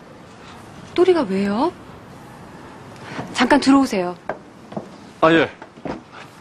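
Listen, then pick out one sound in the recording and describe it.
A young woman speaks with mild annoyance, close by.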